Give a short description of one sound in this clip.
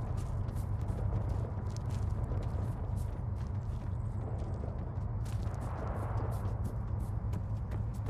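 Footsteps thud quickly on grass and a dirt road.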